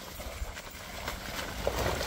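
A dog laps water.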